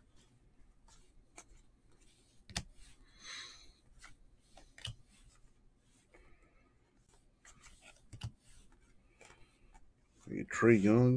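Trading cards shuffle and slap against each other in hands.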